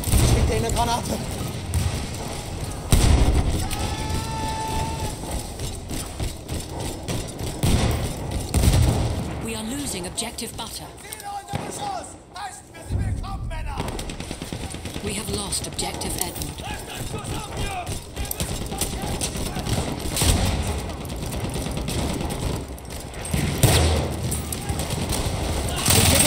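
Gunfire and explosions boom and crackle nearby.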